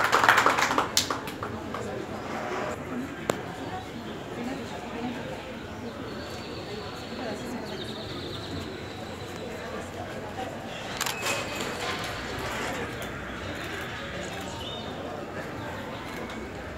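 A crowd of men and women murmurs quietly nearby.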